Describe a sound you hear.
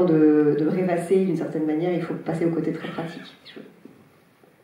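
A woman speaks into a microphone with animation, heard through loudspeakers in a large hall.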